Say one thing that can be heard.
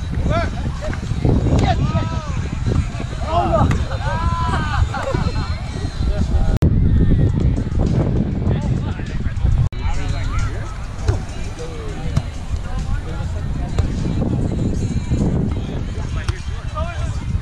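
A volleyball is struck with a hand with a dull thump.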